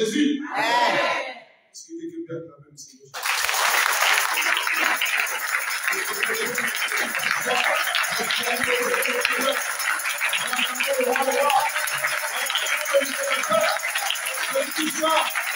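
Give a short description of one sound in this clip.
A man preaches with animation through a microphone and loudspeakers.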